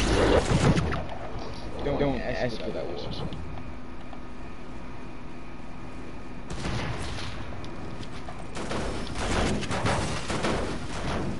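Video game sound effects of wooden building pieces clatter into place.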